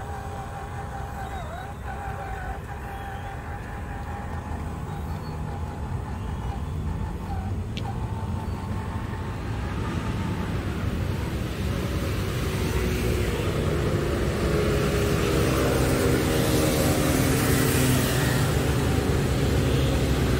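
A small electric motor whirs steadily as a toy truck drives.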